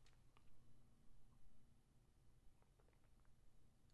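A man sips a drink close to a microphone.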